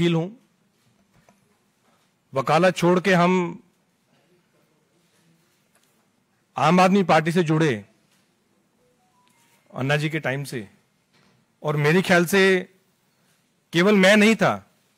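A middle-aged man speaks calmly into a microphone in short bursts with pauses.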